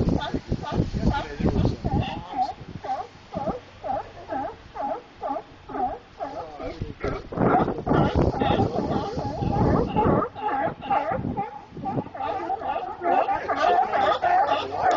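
Sea lions bark loudly and repeatedly, close by.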